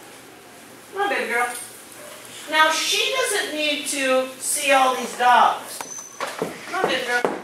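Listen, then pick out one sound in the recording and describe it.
A woman talks to a dog with animation, close by in an echoing hall.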